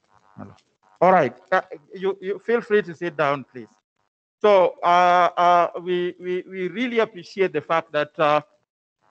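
A woman speaks with animation through an online call.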